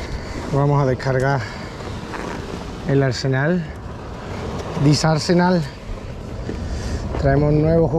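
A plastic bag rustles as hands handle it.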